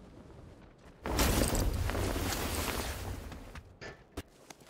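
Wind rushes loudly past a parachuting game figure.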